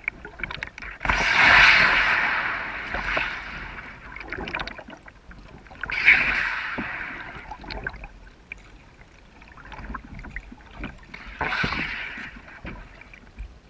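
A kayak paddle dips and splashes in calm water.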